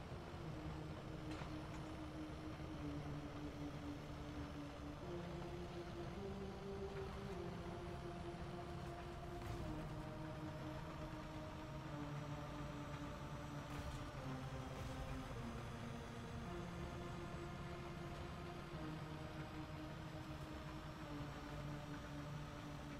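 A tank engine rumbles and whines steadily, its pitch shifting as it changes gear.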